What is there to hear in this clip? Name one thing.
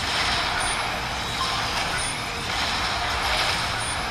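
Explosions burst and rumble.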